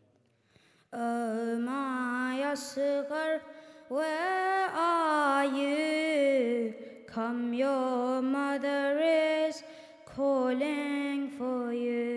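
A boy chants a lament into a microphone, heard through loudspeakers in a reverberant hall.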